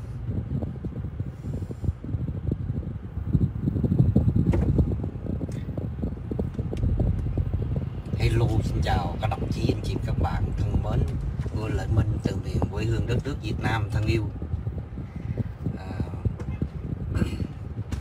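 A car engine and road noise rumble low and steady from inside a moving car.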